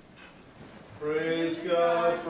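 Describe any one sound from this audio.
A man sings a chant in a loud, steady voice.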